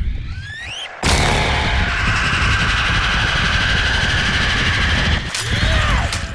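Pistols fire in a rapid burst.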